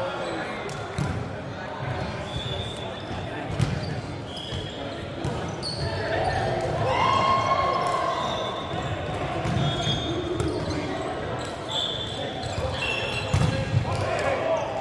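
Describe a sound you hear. A volleyball thumps off hands.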